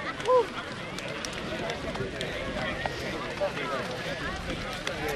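Young men slap hands as they pass each other in line.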